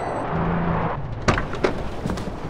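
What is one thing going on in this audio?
A car's body rattles and clunks over bumps.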